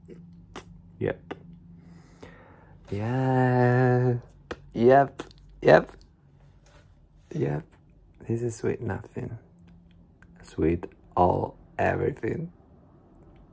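A young man speaks playfully close to a microphone.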